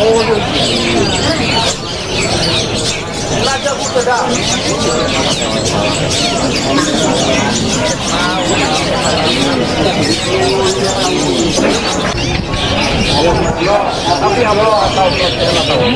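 Small birds chirp and trill rapidly and without pause.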